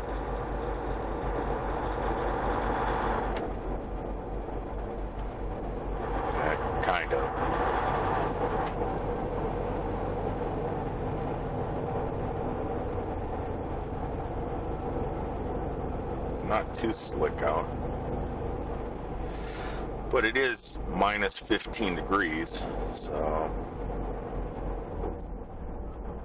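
Tyres rumble on a snowy road.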